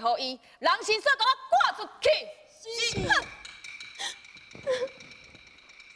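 A young woman sings in a high voice, close to a microphone.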